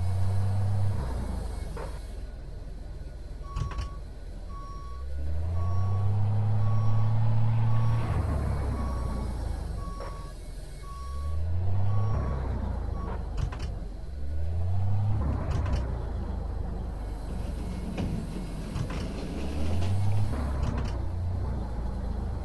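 A truck engine rumbles and revs up and down.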